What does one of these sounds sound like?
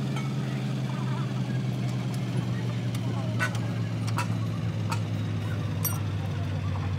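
Metal parts clink and knock as a gear is worked loose.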